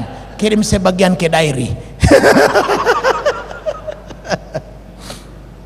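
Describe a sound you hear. A middle-aged man preaches loudly and with animation through a microphone in an echoing hall.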